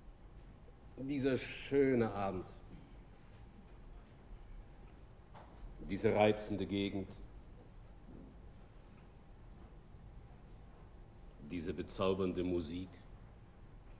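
A middle-aged man sings short phrases slowly, with long pauses between them.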